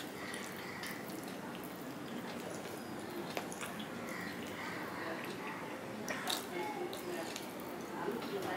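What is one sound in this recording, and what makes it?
A man chews food noisily with his mouth close by.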